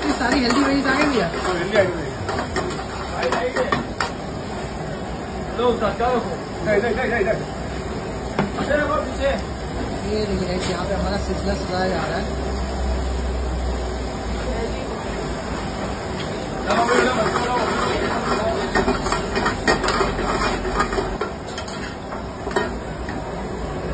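Metal ladles scrape and clang against a wok.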